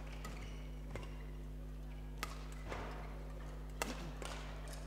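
Rackets strike a shuttlecock in a quick rally, sharp hits echoing in a large hall.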